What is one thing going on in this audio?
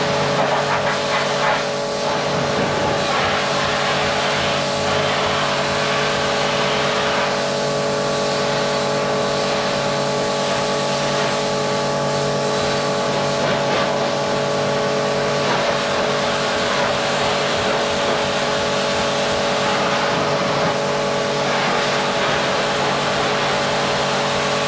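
A pressure washer motor hums steadily nearby.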